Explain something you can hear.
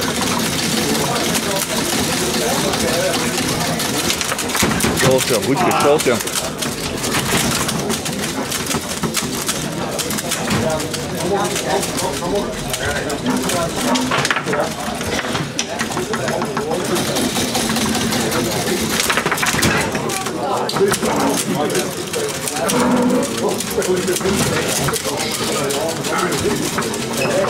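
A foosball knocks against the table's plastic players and walls.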